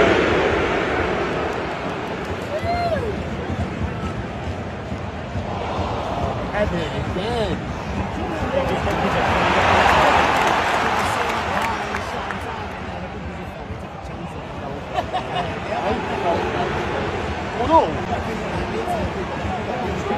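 A large stadium crowd roars and cheers steadily, swelling loudly and then easing off.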